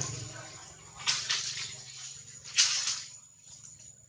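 Dry leaves rustle as monkeys shift on the ground.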